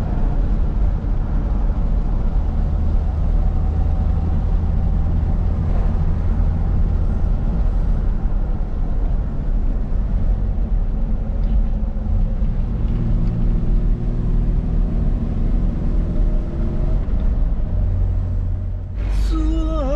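Tyres roll on an asphalt road.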